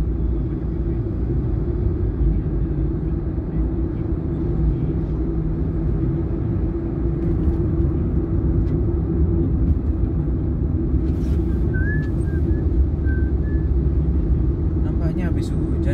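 A car engine hums low and steady, heard from inside the car.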